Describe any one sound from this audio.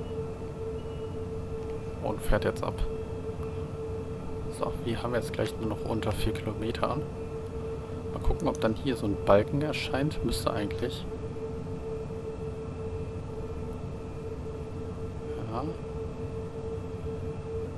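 An electric motor hums with a steady whine.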